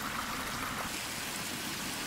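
Water splashes into a small pool.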